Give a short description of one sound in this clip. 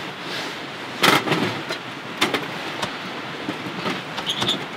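Firewood knocks against a metal stove as it is pushed in.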